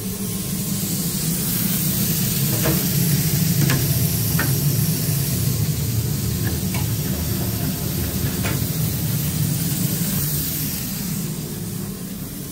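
Oil hisses and sizzles softly in a deep fryer.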